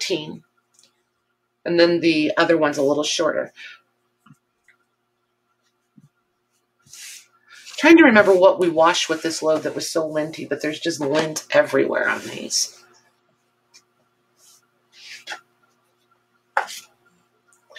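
Soft cloth rustles as it is folded and handled.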